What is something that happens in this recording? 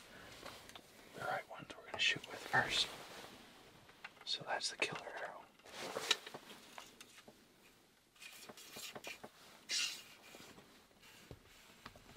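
Arrows click and rattle against each other.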